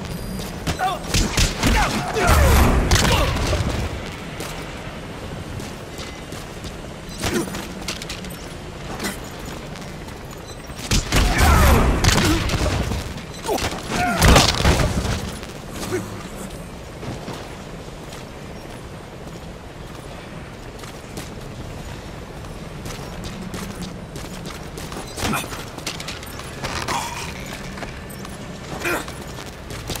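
Punches and blows land with heavy thuds.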